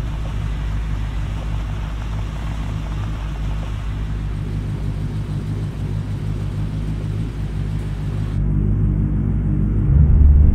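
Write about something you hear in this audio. A car engine idles with a steady low hum, growing louder near the end.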